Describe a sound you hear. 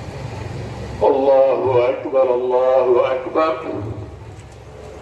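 A man's voice calls out loudly in a chant over a loudspeaker.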